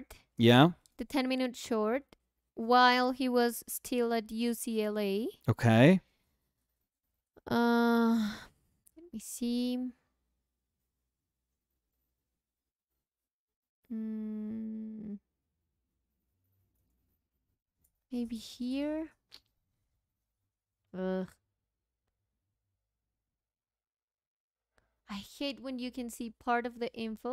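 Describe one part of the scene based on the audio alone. A young woman talks calmly into a nearby microphone, with pauses.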